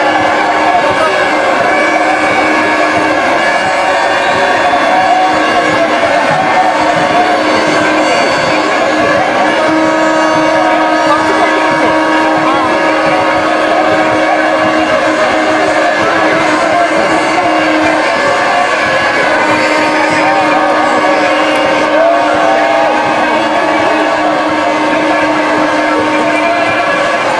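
A large crowd cheers and shouts in the distance.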